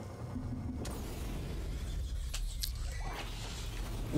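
A flamethrower roars in a burst of fire.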